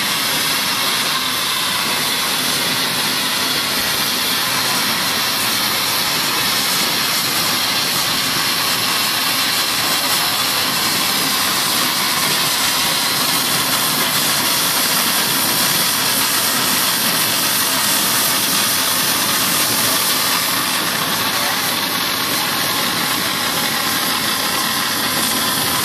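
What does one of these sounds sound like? Heavy steam engines rumble and clank slowly past on a road.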